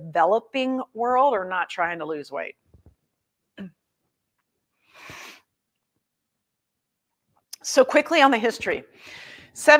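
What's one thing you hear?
A woman speaks calmly and clearly into a close microphone, with pauses.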